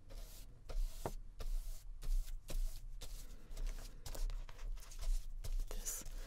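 A paintbrush scrapes and swishes across paper.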